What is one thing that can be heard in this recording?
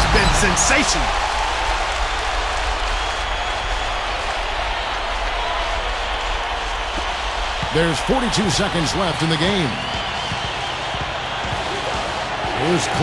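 A large crowd roars steadily in an echoing arena.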